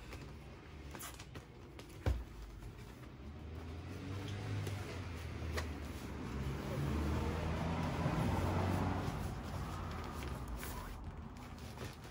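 A plastic-wrapped bag rustles as it is handled.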